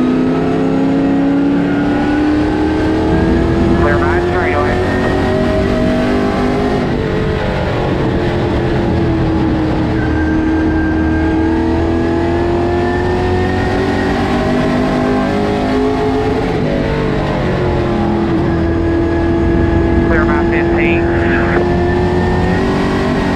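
A race car engine roars loudly from inside the cabin, rising and falling in pitch as it speeds up and slows down.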